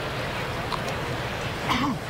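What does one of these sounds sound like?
A crowd murmurs outdoors in a ballpark.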